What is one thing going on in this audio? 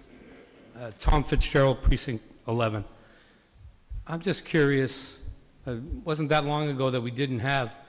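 A middle-aged man speaks steadily into a microphone, heard through a loudspeaker in a large hall.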